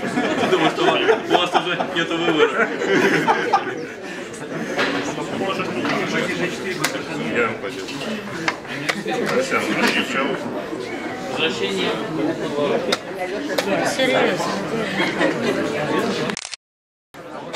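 Several people chatter in the background of a busy room.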